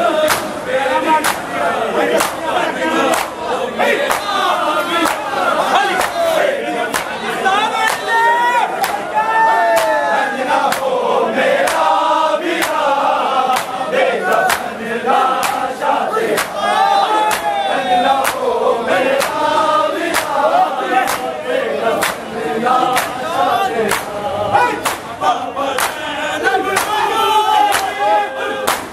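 A crowd of men beat their chests in a steady, rhythmic pounding.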